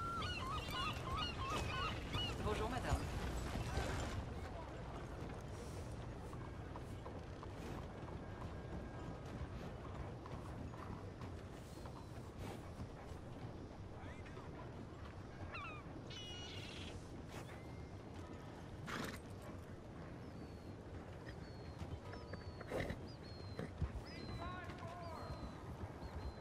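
A horse's hooves step slowly on gravel.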